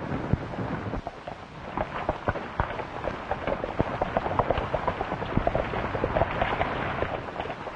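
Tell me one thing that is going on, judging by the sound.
Horses gallop past with drumming hooves.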